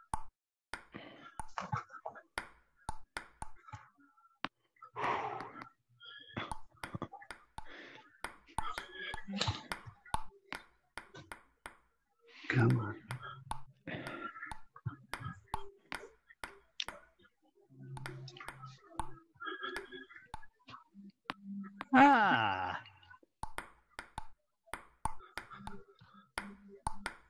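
A ping-pong ball clicks sharply against paddles and a table in a quick back-and-forth rally.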